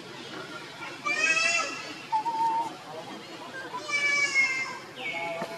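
A baby monkey squeals in short, high-pitched cries.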